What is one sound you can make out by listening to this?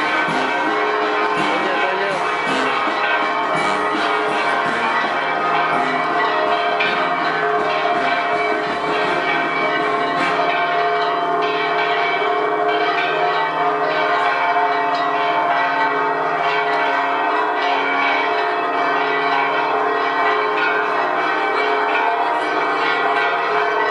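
A crowd chatters outdoors in a street.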